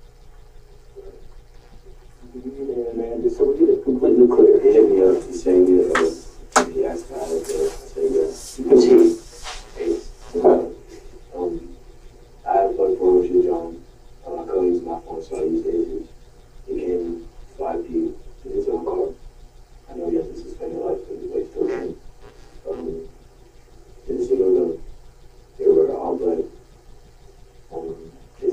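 A man speaks calmly in a small room, heard from a little distance.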